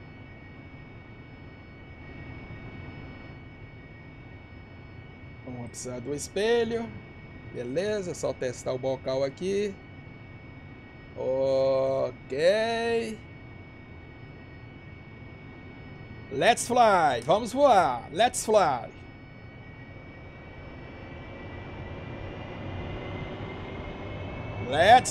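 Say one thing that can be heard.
A jet engine idles with a steady whine that slowly rises in pitch toward the end.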